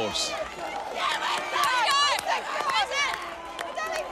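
A young woman screams with excitement.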